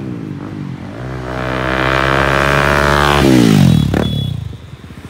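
A car drives past close by with a rising and falling whoosh.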